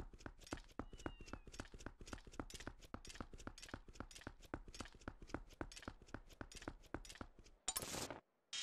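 Quick footsteps tap on stone paving.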